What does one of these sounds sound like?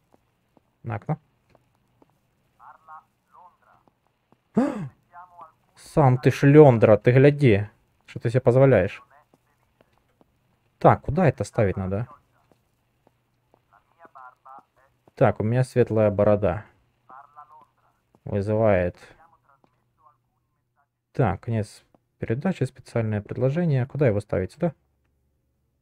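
A man speaks through a radio loudspeaker in short, formal announcements.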